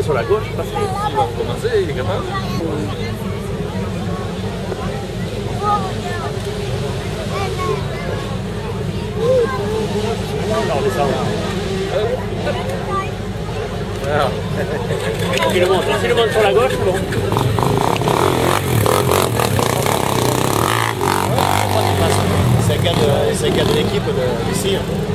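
A quad bike engine revs and growls as it climbs over rocks.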